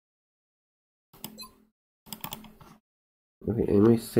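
Soft interface clicks sound as menu options are selected.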